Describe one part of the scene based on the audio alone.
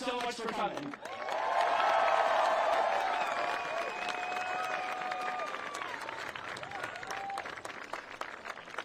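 A crowd cheers, whistles and applauds.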